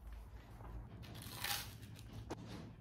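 A bite into crisp toast crunches.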